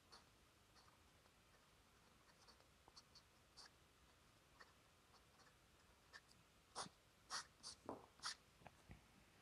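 A marker squeaks and scratches across paper.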